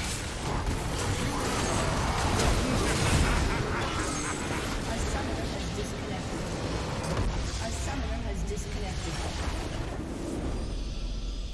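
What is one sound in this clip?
Game spells and attacks crash and whoosh in a fierce battle.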